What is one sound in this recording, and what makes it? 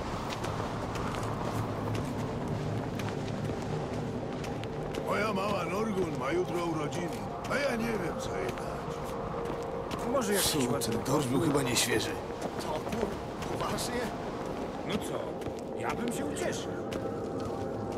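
Footsteps walk steadily on stone.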